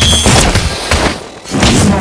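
An explosion bursts with a loud crack.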